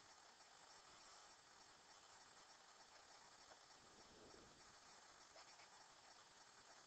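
A pen scratches softly on paper as someone writes.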